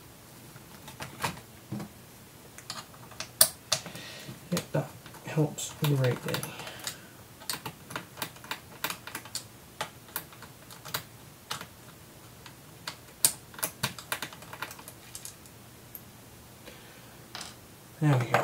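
Plastic clicks and snaps as a laptop cover is pried open.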